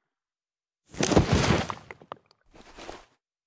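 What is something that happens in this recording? A snowman bursts apart with a soft crunch.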